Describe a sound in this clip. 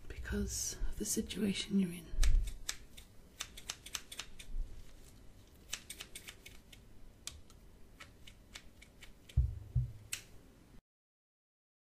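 Fingers brush and tap close to the microphone with soft crackles and clicks.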